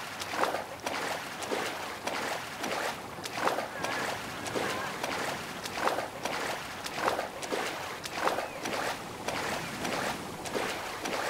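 Water splashes rhythmically with swimming strokes.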